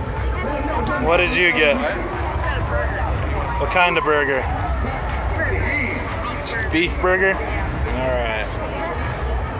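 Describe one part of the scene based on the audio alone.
A young boy talks close by.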